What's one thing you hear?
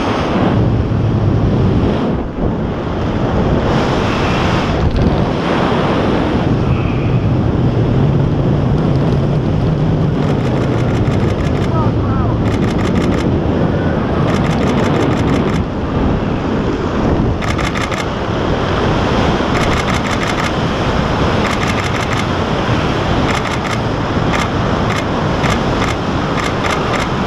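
Strong wind rushes and buffets steadily outdoors.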